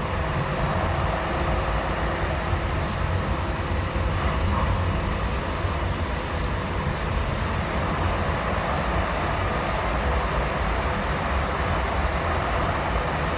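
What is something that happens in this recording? A train car rumbles and rattles steadily as it rolls along the tracks.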